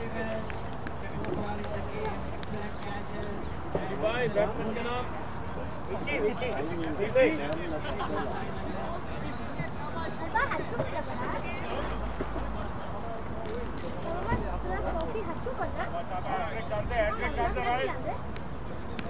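Men talk and call out across an open field at a distance.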